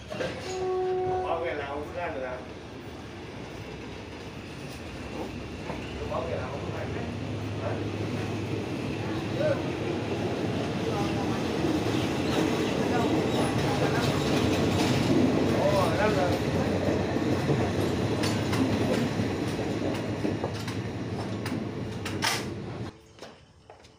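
A passenger train rolls past on the rails, wheels clattering.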